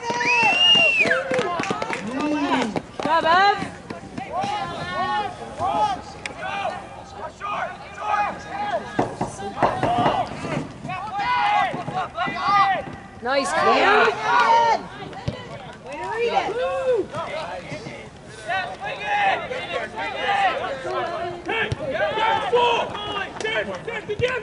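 Teenage players shout and call out loudly across an open field.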